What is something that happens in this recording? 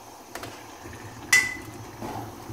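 A metal lid clanks as it is lifted off a pot.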